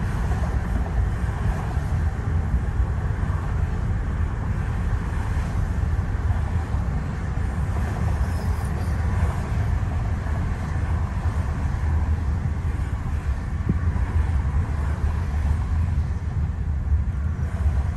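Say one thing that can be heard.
Tyres hum on the highway.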